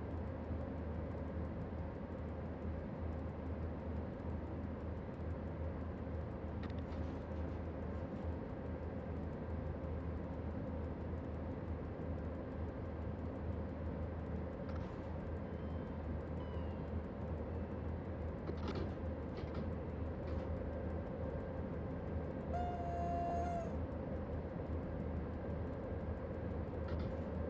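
A train engine hums and rumbles steadily as the train runs along the track.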